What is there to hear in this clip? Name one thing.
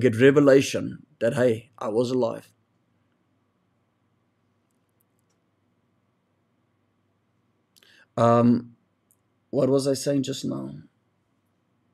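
A young man speaks calmly and close to a microphone, with pauses.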